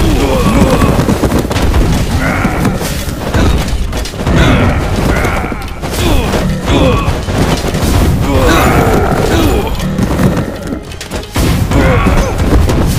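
Swords clash and blows thud over and over in a chaotic battle.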